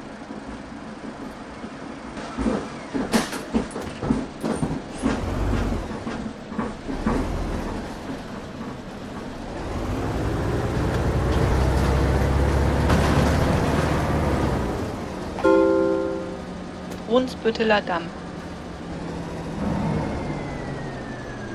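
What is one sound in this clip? A bus engine rumbles and swells as the bus speeds up.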